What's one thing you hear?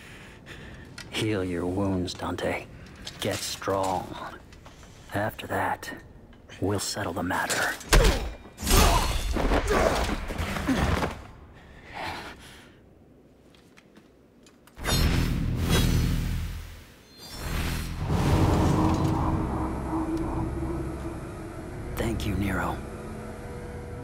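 Another man speaks calmly and coldly in a low voice, close by.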